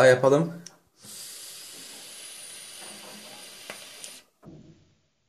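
A man inhales with a soft, steady hiss.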